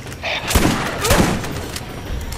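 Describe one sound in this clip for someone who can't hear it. A large blast booms.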